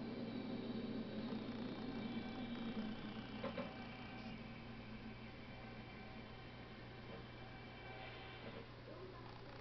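An electric train's motors whine as the train brakes to a stop.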